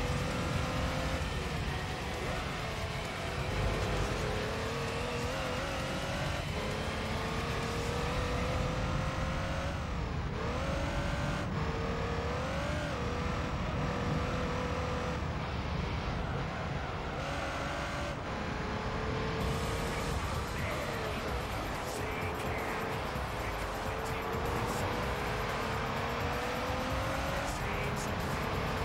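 A racing car engine roars steadily, its pitch rising and dropping with gear changes.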